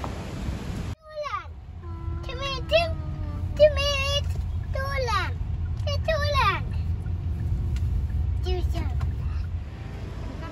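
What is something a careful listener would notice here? A car rumbles along a road.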